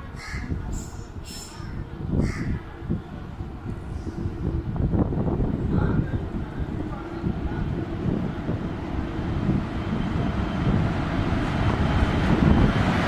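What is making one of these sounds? A train rumbles closer along the track and grows louder.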